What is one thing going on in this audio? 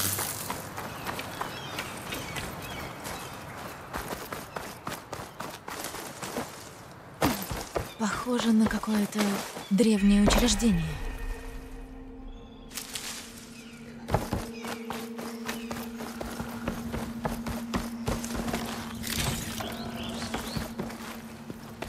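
Footsteps rustle through grass and thud on wooden boards.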